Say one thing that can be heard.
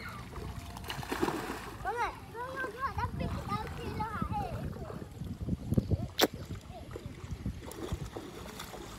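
Water splashes as young boys wade and play in a shallow stream.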